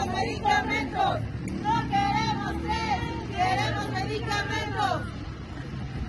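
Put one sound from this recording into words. A woman speaks loudly close by.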